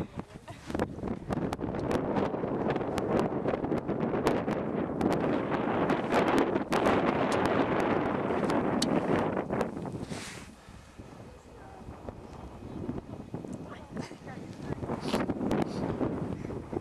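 Wind blows hard and rumbles outdoors, easing off partway through.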